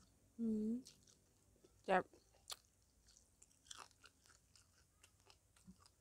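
A woman chews with wet smacking sounds.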